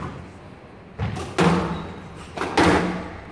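A squash ball smacks off rackets and walls with sharp echoing cracks.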